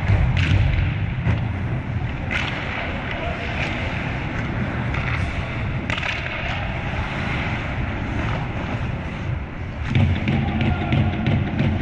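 Skate blades scrape and hiss on ice in a large echoing arena.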